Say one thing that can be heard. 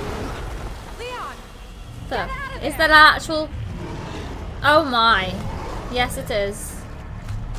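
A young woman exclaims loudly into a nearby microphone.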